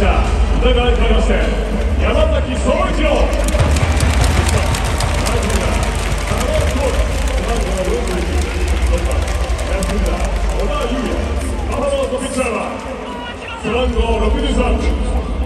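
Music plays loudly over stadium loudspeakers.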